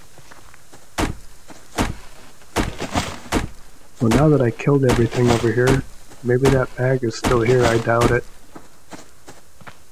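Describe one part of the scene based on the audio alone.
An axe chops into a tree trunk with sharp knocks.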